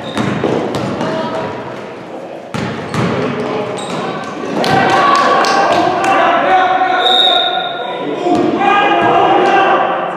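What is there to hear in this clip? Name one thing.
A basketball bounces with echoing thuds.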